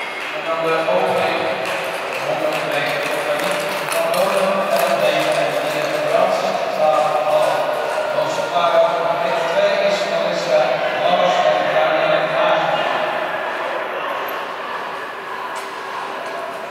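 A crowd of spectators cheers in a large echoing hall.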